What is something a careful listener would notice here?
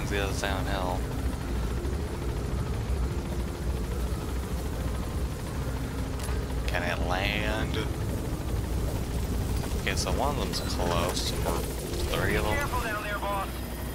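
A helicopter's rotor drones steadily in the background.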